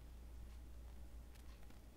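Faint clicks come from buttons being pressed on a small device.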